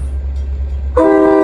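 A train horn sounds loudly.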